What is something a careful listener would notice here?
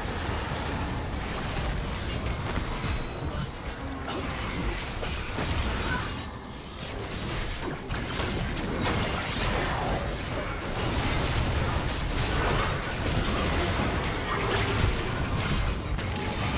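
Game spells whoosh and crackle during a fast battle.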